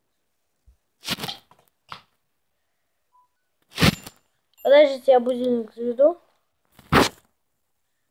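Hands bump and rub against a phone.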